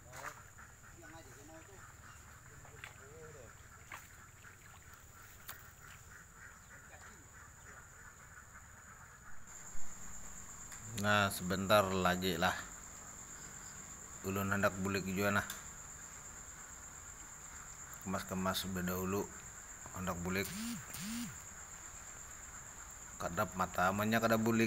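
A man speaks calmly, close by, in pauses between short phrases.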